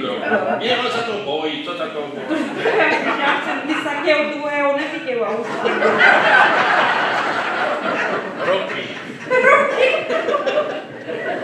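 A man talks and laughs nearby.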